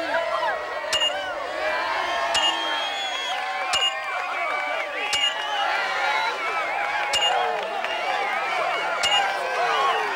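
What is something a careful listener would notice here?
A short electronic beep sounds each time a game menu advances.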